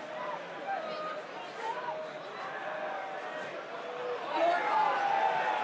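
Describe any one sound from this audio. A large stadium crowd chants and cheers in a wide open space.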